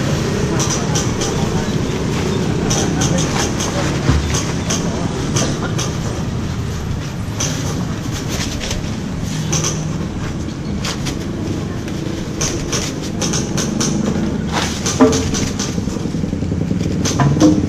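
Plastic sheeting rustles and crackles as it is pulled and crumpled.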